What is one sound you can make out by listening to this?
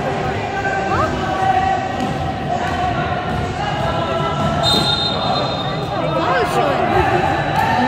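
Sneakers squeak on a sports floor in a large echoing hall.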